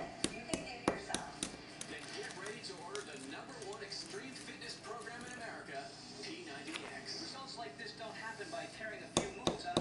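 Ice cubes clink against a glass.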